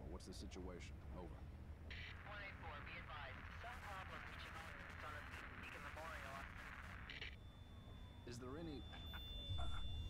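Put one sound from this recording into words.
A man speaks over a police radio.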